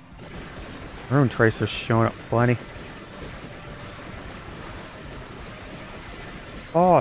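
Rapid electronic game sound effects of attacks and hits play.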